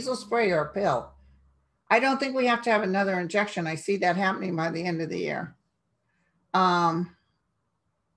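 A middle-aged woman talks with animation, close to a microphone.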